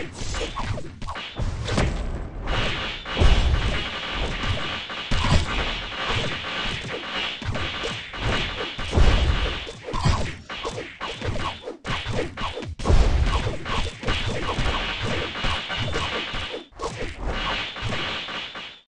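Game sword slashes and magic blasts crash rapidly in a noisy battle.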